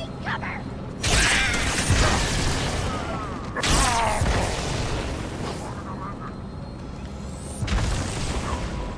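An energy sword swings and crackles in a video game.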